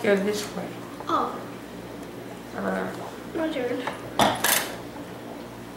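A young woman laughs and talks close by.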